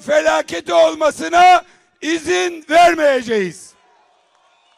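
A middle-aged man shouts with passion through a loudspeaker outdoors.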